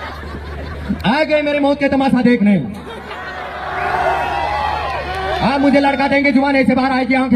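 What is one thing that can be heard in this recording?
A young man sings loudly into a microphone through loudspeakers.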